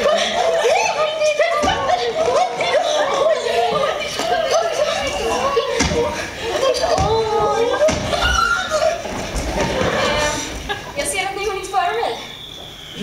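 Young women shout and squeal excitedly on a stage.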